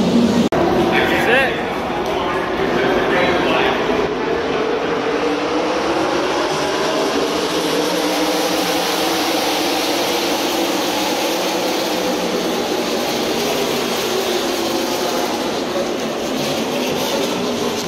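Race cars roar around a track in the distance.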